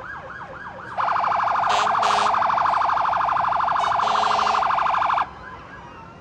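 A fire truck's air horn blares steadily.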